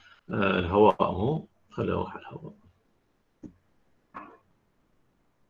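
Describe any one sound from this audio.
A man speaks calmly through a microphone, heard as if over an online call.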